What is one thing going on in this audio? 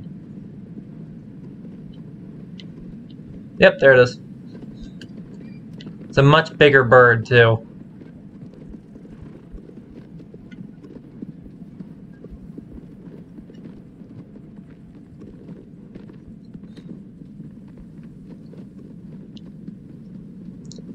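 A horse gallops over grass.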